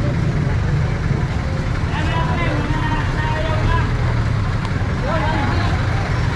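A jeepney engine idles with a low rumble close by.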